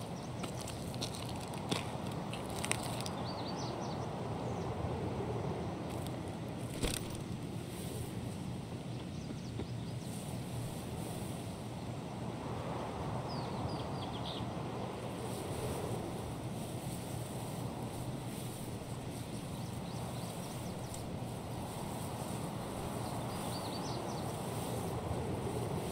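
Grass rustles steadily as someone moves through it.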